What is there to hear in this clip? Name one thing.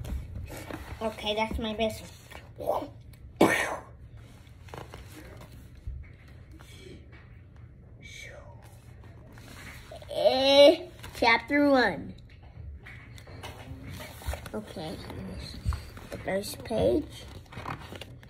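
A young child talks loudly nearby.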